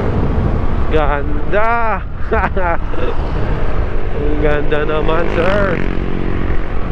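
A nearby motorcycle engine revs up and down.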